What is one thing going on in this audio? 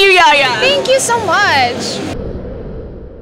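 A second young woman answers into a microphone.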